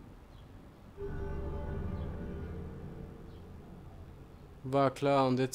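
A soft magical chime swells and slowly fades.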